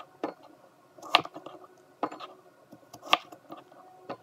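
A knife chops through squash onto a wooden board with sharp knocks.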